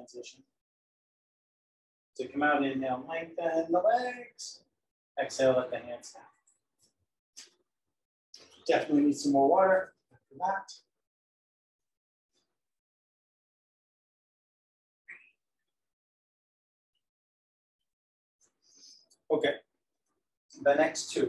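A man speaks calmly and clearly, as if giving instructions.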